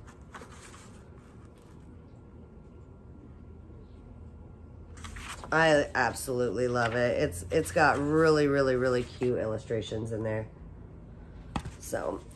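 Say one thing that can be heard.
Book pages rustle and turn.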